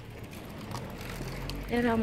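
A bicycle rolls past on paving stones.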